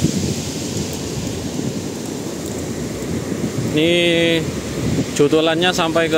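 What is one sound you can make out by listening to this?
Waves break and wash onto a beach in the distance.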